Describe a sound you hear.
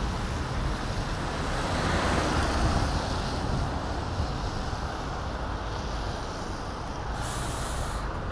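A bus swishes past close by on a wet road.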